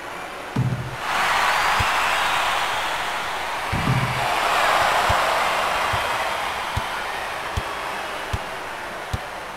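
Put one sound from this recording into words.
A crowd cheers loudly, swells and slowly fades.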